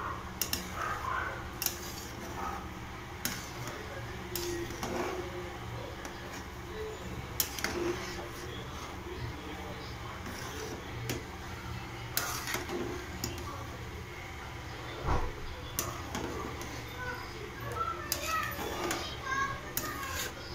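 A metal spoon scrapes and clinks against a steel pot.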